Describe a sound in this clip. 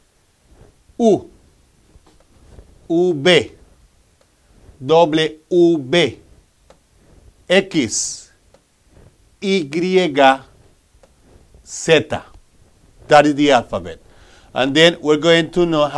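A middle-aged man speaks clearly and slowly into a close microphone, pausing between phrases.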